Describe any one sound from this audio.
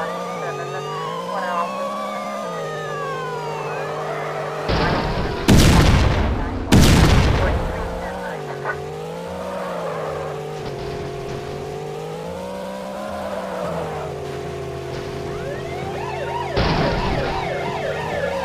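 Police sirens wail.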